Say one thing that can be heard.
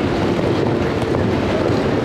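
Ice skates scrape across ice close by.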